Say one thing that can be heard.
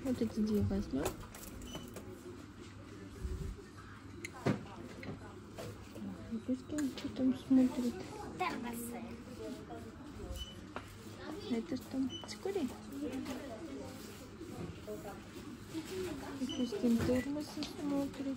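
A young girl talks nearby.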